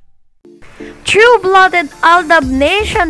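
A woman sings loudly and close by.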